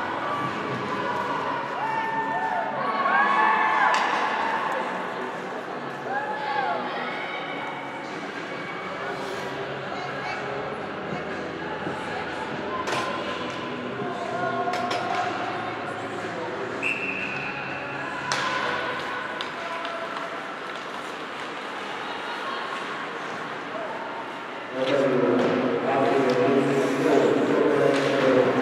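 Skates scrape and hiss across the ice in a large echoing arena.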